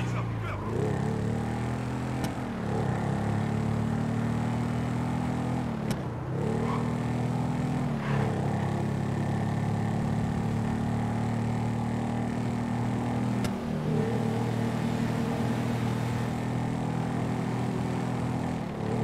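A motorcycle engine roars steadily, dipping briefly as gears shift and then revving up again.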